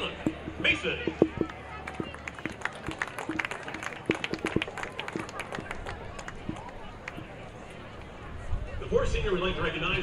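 A small crowd chatters and calls out in an open outdoor space.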